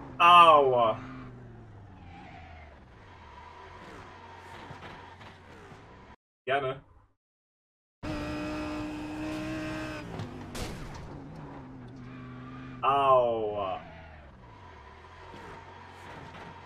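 A young man speaks through a headset microphone.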